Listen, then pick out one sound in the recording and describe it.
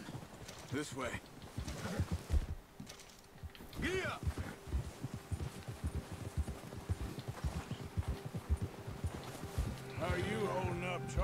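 Horses' hooves thud through snow.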